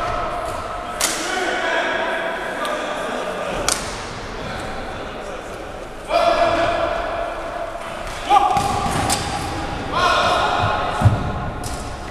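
A ball thuds sharply off the floor and walls, echoing through a large hall.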